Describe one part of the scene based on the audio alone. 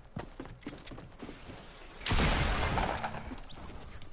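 A pickaxe strikes with a sharp crack.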